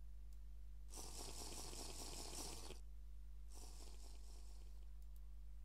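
Water gurgles as a bottle is filled.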